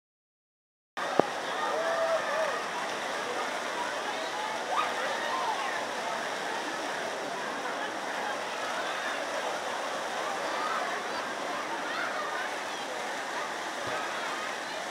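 Water gurgles and splashes nearby.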